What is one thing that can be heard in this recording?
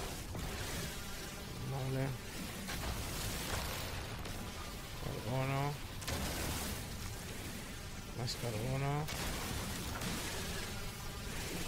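A mining laser hums and crackles steadily.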